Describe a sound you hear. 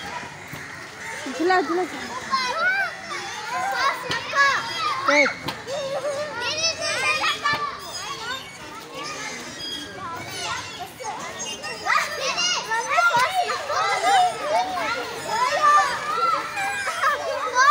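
Young girls laugh and chatter close by.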